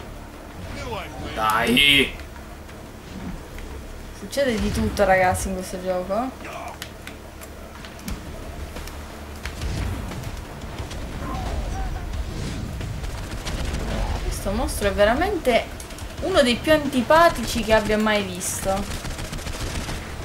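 A woman talks and laughs, close to a microphone.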